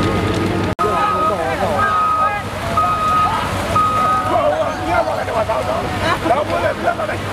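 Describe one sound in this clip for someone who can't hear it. Water splashes as many people wade and swim.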